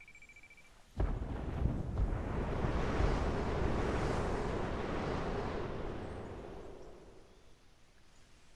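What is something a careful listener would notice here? A storm roars loudly, then fades away.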